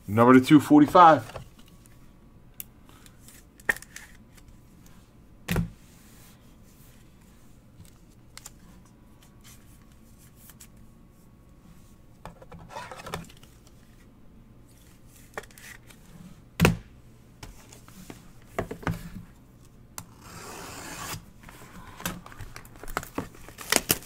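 Trading cards rustle and slide as hands flip through them.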